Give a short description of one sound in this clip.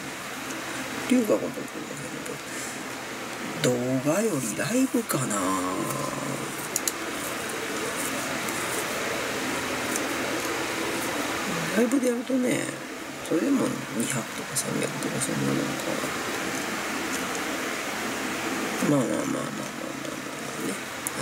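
A middle-aged woman speaks calmly and briefly into a nearby microphone, with long pauses.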